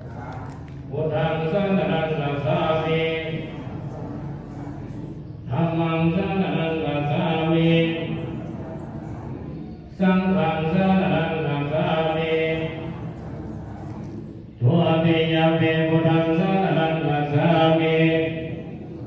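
A group of women chant a prayer together.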